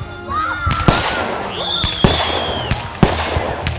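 Firework rockets whistle as they shoot upward.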